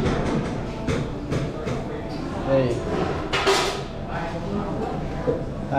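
Metal utensils and containers clatter nearby.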